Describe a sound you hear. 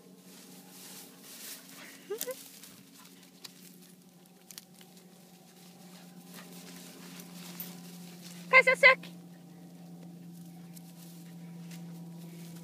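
A dog runs through tall grass, rustling the stalks.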